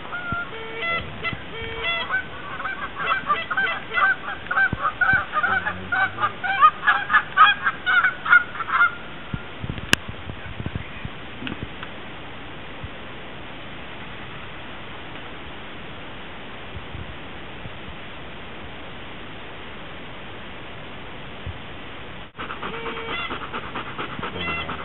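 Large birds call out loudly and repeatedly nearby outdoors.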